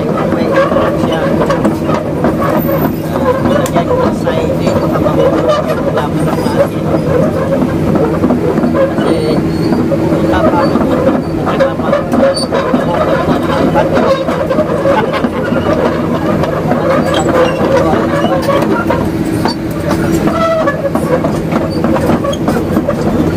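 A car engine hums steadily close by.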